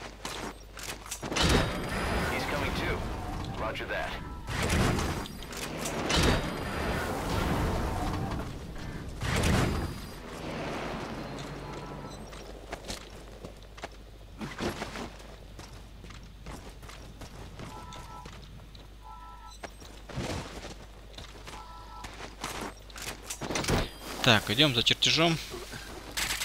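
Footsteps crunch on gravel and grass.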